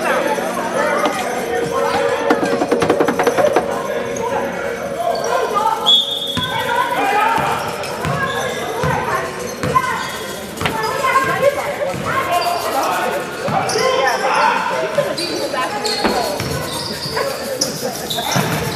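Young players and spectators call out and chatter in an echoing gym.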